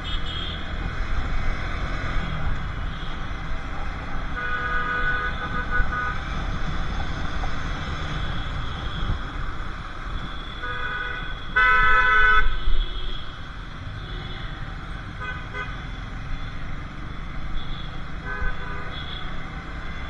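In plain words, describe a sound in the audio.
Wind rumbles against the recorder while riding.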